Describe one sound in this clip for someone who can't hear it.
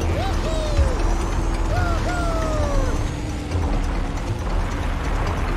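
Toy kart engines hum steadily as they race.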